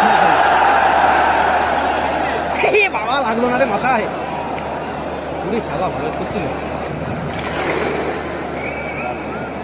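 A large stadium crowd roars and chants loudly.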